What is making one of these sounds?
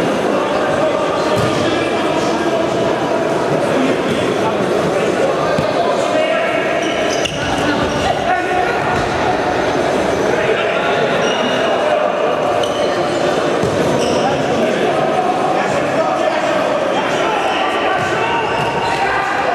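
Men shout to each other in a large echoing hall.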